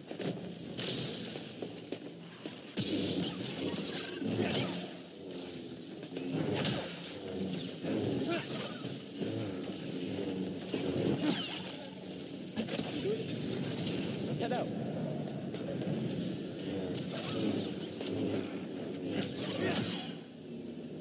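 Energy blades swoosh and clash in a fast fight.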